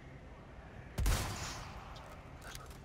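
A rifle fires a single loud shot that rings out.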